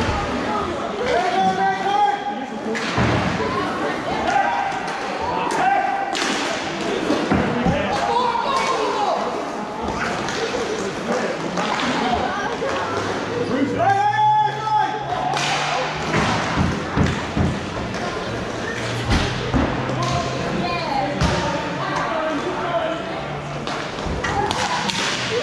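Players shout and call out to one another, echoing in the hall.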